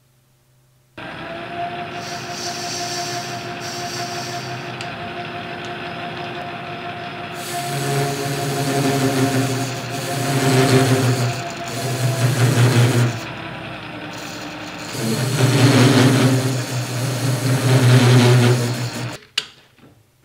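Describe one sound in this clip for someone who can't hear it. A lathe motor hums and whirs steadily.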